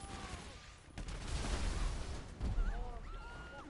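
Gunshots ring out from a video game.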